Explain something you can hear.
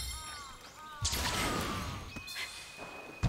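A magical effect shimmers with a bright chime.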